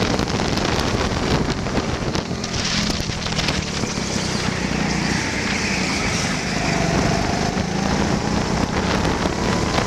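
A go-kart engine buzzes loudly up close.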